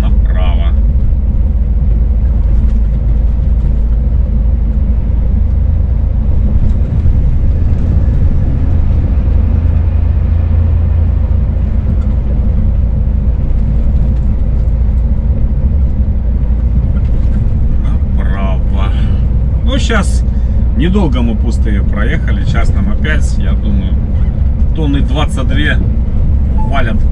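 A heavy engine rumbles steadily from close by while driving along a road.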